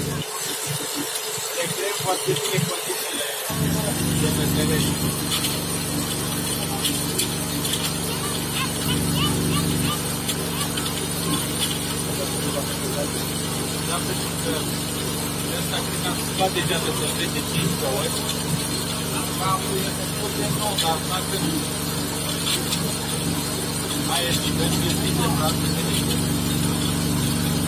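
Men talk nearby in low voices.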